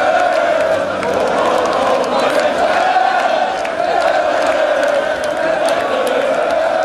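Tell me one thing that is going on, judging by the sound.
A large crowd chants loudly in unison outdoors.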